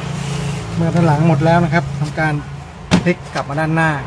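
A laptop thumps down onto a table.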